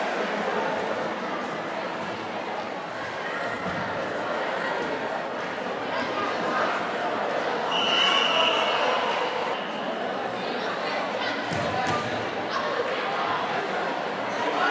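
Players' shoes squeak on the court.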